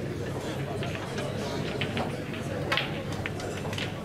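A pool cue strikes the cue ball.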